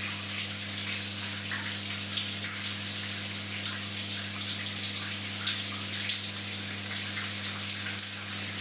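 Shower water splashes steadily onto a man.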